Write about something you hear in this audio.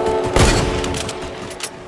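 A game weapon fires with sharp electronic zaps.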